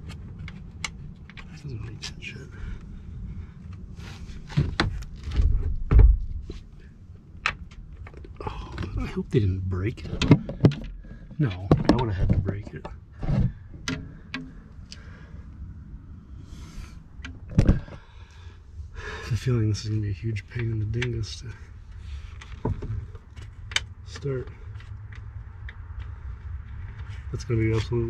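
Wires and parts knock and scrape against a car door frame.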